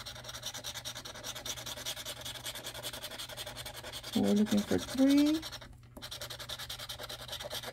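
A scratcher rapidly scrapes across a card in a steady rhythm.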